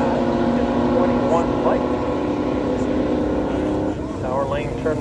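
Race car engines roar down a drag strip.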